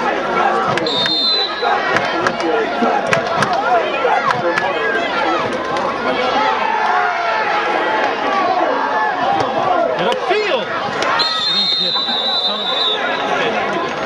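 A referee's whistle blows shrilly.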